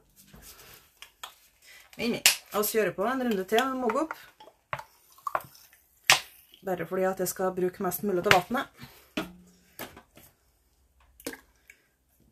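Plastic bottles clatter and knock together.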